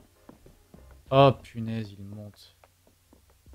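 A young man speaks close to a microphone with animation.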